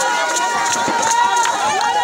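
A crowd claps hands in rhythm.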